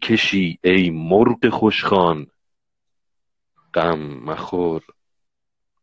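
A middle-aged man speaks calmly and close to a phone microphone, in short bursts with pauses.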